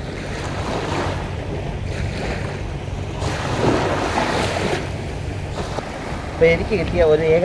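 Small waves wash and lap onto the shore.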